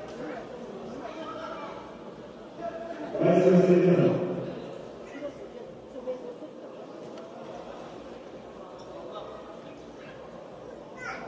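A crowd of spectators murmurs and chatters in a large echoing hall.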